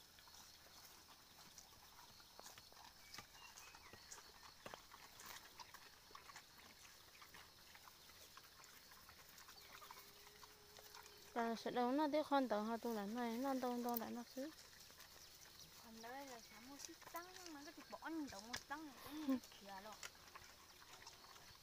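Pigs snuffle and root about in soft mud.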